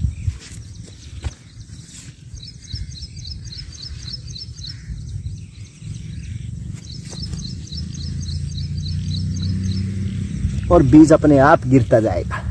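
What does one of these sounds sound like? A hand brushes and pats loose soil softly.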